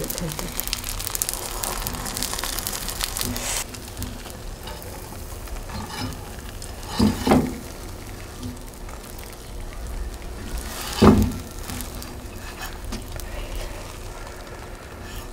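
Eggs sizzle and crackle in a hot frying pan.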